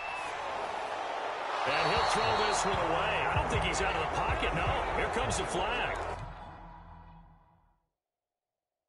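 A stadium crowd roars and cheers, then fades away.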